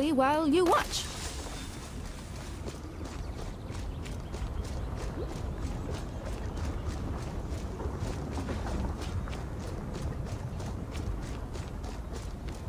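Footsteps patter on stone.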